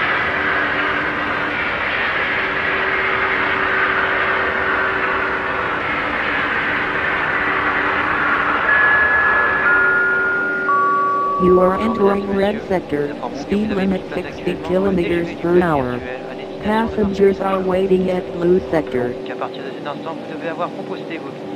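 An electric train motor hums steadily as the train runs along the track.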